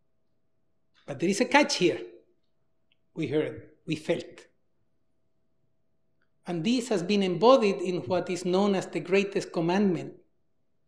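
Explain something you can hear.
A man speaks calmly through a microphone in a large hall, with pauses between phrases.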